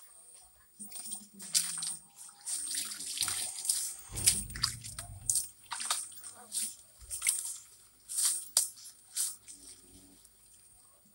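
A tool scrapes and thumps against soft wet wood pulp.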